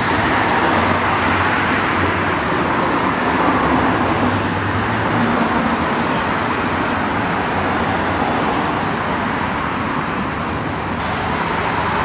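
Road traffic roars past steadily nearby.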